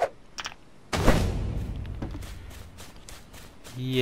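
A heavy thud booms with a low rumble.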